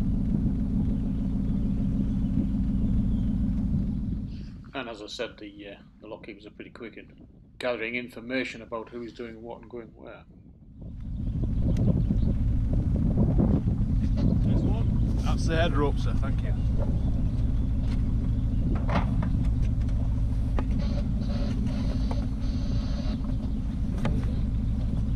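A boat engine idles with a low, steady rumble.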